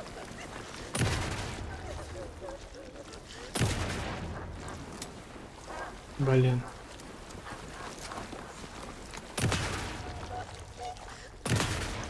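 Gunshots bang loudly, each followed by a long echoing ring.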